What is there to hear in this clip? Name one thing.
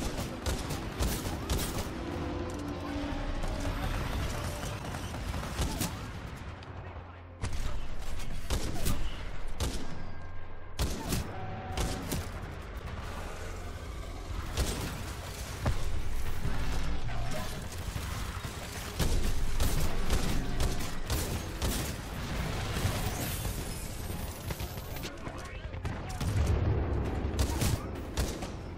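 Guns fire in rapid bursts and single shots.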